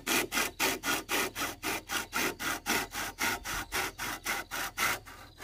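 A hand saw cuts through bamboo with quick, rhythmic rasping strokes.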